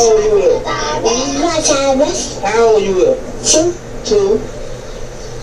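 A young child cries loudly nearby.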